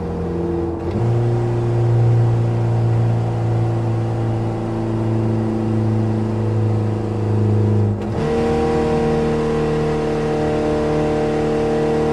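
A small car engine hums steadily and shifts gears, with a drop and rise in pitch.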